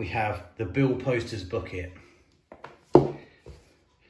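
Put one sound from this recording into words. A book is set down on a hard table with a soft knock.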